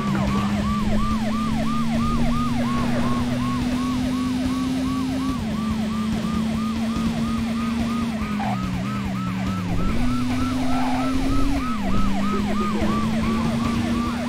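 A police siren wails rapidly and steadily.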